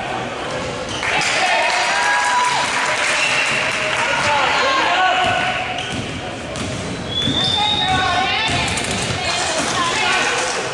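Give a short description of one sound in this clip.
A crowd cheers and shouts in the stands.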